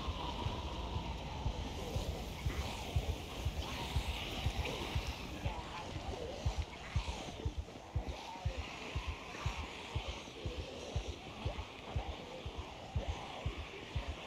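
Fires crackle and burn.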